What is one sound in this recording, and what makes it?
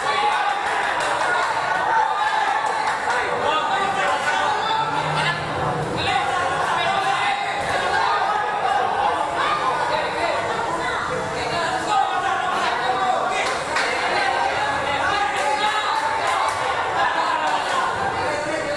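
A crowd murmurs and chatters throughout in an echoing hall.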